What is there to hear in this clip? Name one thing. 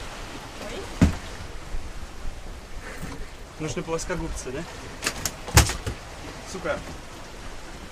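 A fish flops and thumps on a wooden deck.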